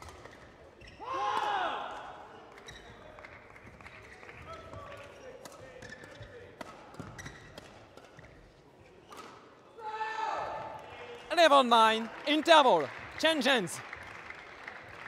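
Young men shout loudly in a large echoing hall.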